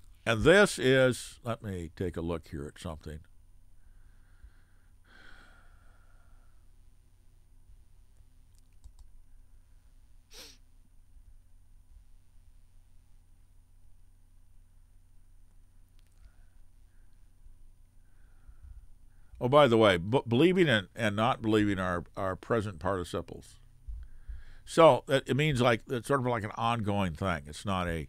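An elderly man speaks calmly and closely into a microphone, with pauses.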